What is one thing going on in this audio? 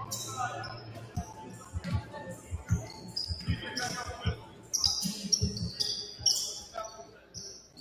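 A basketball bounces on the hardwood floor.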